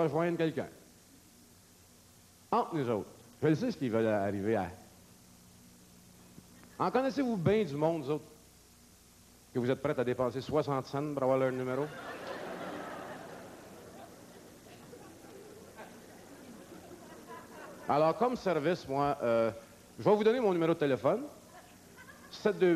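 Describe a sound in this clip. A middle-aged man speaks into a microphone to an audience, pausing often.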